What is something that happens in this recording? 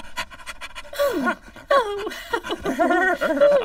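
A woman exclaims with a startled gasp.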